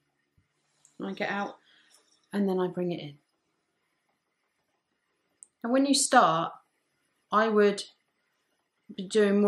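A woman speaks calmly and clearly nearby, explaining in short phrases.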